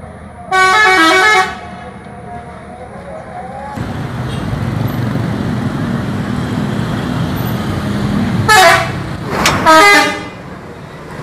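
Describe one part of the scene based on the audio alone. A bus horn plays a loud musical tune in short bursts.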